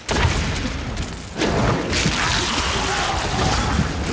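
Spells burst with loud magical blasts.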